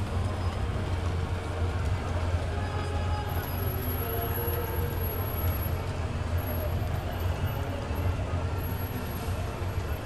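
Horse hooves clop on the street pavement.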